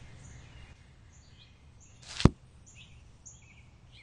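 A book opens with a soft papery flap.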